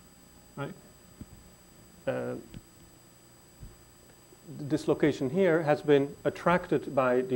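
A man lectures through a microphone, speaking with pauses.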